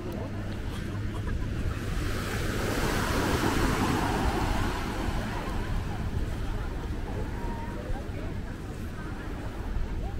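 Small waves wash onto a sandy shore.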